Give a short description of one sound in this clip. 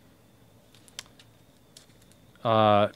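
A card slides against a card and is set down with a soft tap.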